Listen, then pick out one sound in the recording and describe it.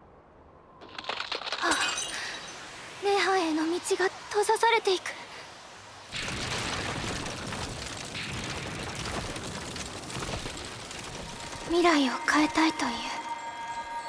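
A woman speaks calmly and solemnly.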